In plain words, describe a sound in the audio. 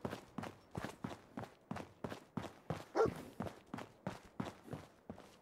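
Footsteps thud steadily on hard ground at a walking pace.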